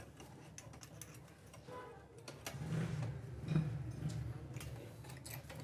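Metal parts click and tap as they are handled.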